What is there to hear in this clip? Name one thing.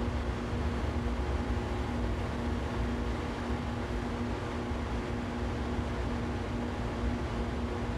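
An electric train rumbles steadily along the rails with a low motor hum.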